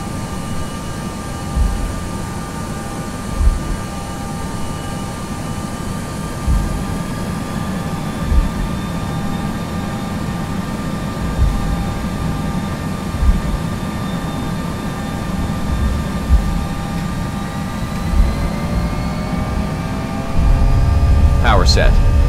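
Jet engines roar steadily as an airliner rolls down a runway.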